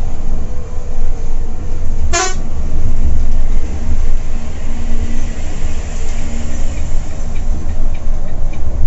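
A diesel coach engine rumbles low while cruising, heard from inside the cab.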